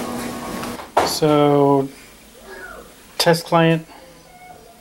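A door chime rings with a loud ding-dong.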